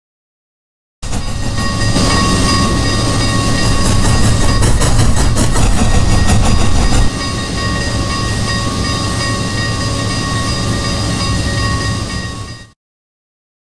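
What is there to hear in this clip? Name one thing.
A steam locomotive chuffs and hisses steam.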